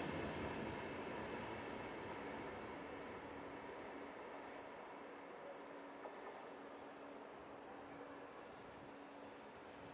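An electric passenger train pulls away and fades into the distance.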